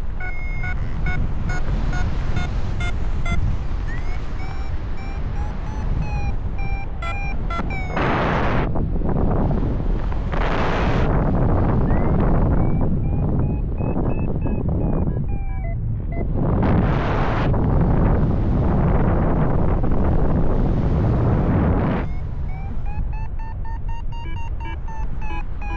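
Wind rushes loudly past the microphone, rising and falling in strong gusts.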